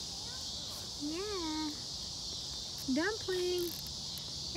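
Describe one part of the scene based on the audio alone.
A baby coos and squeals up close.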